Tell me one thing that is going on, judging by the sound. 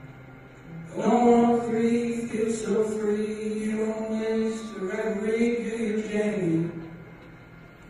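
A young man sings slowly into a microphone, with long held notes.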